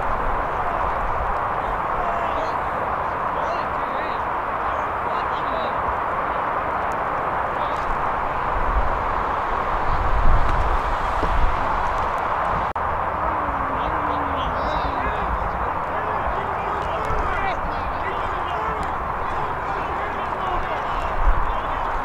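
Wind blows steadily across an open field outdoors.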